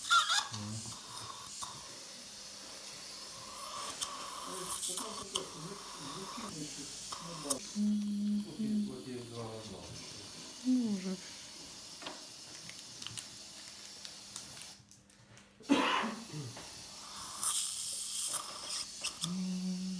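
A dental suction tube hisses and slurps.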